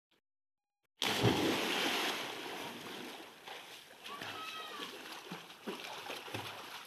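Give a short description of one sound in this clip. A boy splashes into water after a jump.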